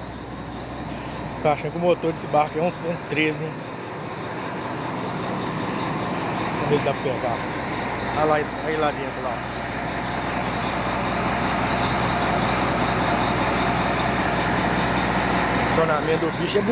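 A ferry tugboat's diesel engine rumbles steadily, heard through an open engine-room door.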